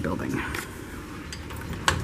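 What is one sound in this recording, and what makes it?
A finger presses an elevator button.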